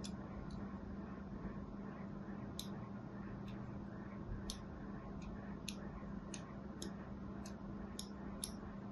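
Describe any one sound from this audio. A metal tool scrapes and scratches the surface of a bar of soap in short, crisp strokes.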